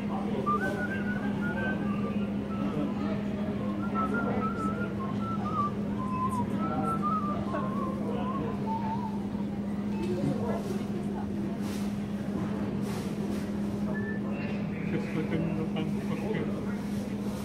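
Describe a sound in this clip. A cloth rubs and squeaks on a glass door.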